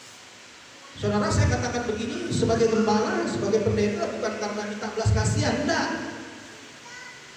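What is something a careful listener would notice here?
A man speaks with animation through a microphone and loudspeakers in a large echoing hall.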